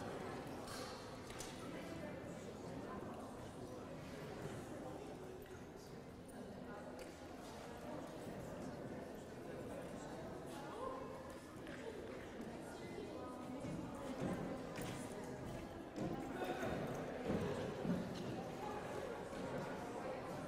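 A man talks quietly in a large echoing hall.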